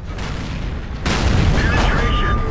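A tank cannon fires with a loud, sudden boom.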